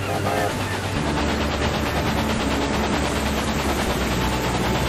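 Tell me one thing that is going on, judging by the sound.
A steam engine chuffs in a quick, even rhythm.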